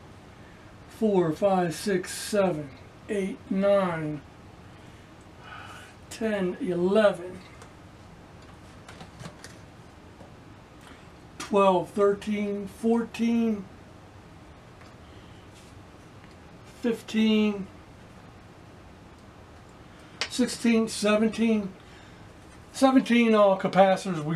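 An elderly man talks calmly, close by, in short bursts with pauses.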